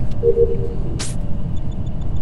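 A short electronic whoosh plays as a game panel closes.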